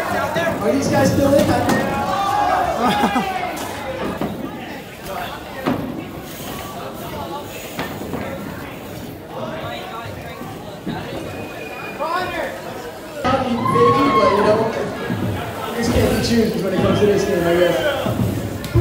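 A group of children and adults cheer and shout excitedly close by.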